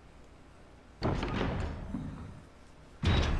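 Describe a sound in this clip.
A heavy metal door scrapes open.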